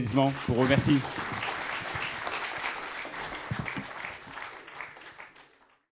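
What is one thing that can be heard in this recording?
An audience murmurs and chatters.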